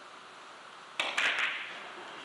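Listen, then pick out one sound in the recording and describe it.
A cue strikes a billiard ball sharply.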